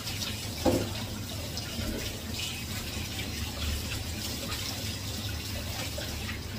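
Dishes clink and scrape as they are washed.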